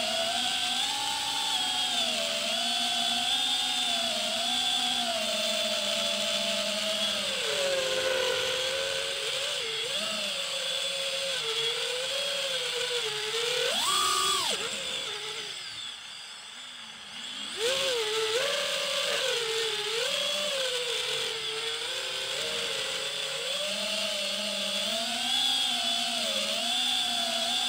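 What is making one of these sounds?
Small drone propellers whine loudly, rising and falling in pitch, and briefly cut out before whining again.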